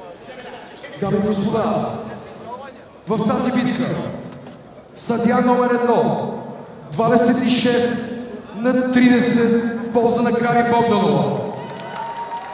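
A man announces loudly through a microphone, his voice booming through an arena's loudspeakers.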